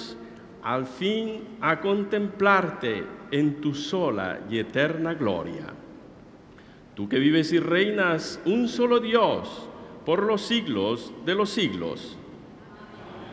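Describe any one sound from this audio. A mixed choir sings together, echoing in a large hall.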